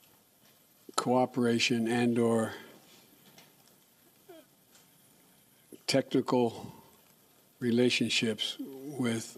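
An elderly man speaks slowly into a microphone, pausing between phrases.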